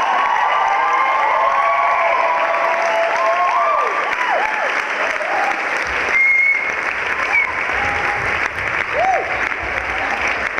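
Audience members cheer and whistle.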